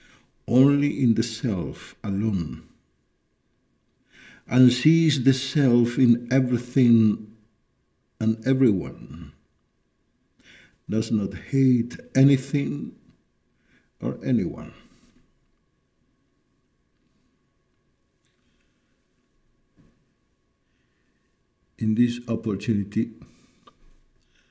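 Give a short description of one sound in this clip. An elderly man speaks calmly and slowly, in pauses, close to a microphone.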